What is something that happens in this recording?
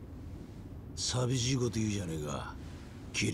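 A second man answers in a teasing tone, close by.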